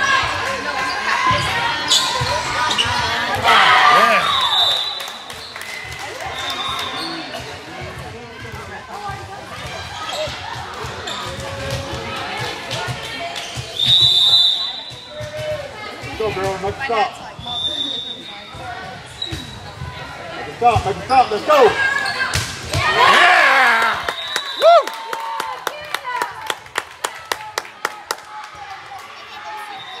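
A volleyball is struck with dull thumps in an echoing hall.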